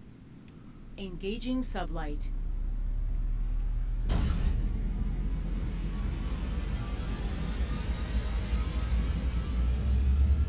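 A spaceship engine rumbles low and steadily, growing louder.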